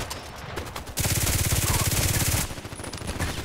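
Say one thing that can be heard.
A pistol fires a rapid burst of loud shots.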